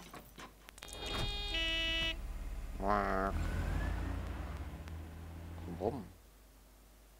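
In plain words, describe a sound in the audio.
A taxi engine hums as the car pulls up and stops.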